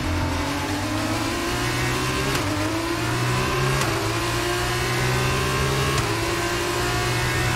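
A racing car engine roars at high revs, climbing in pitch through each gear.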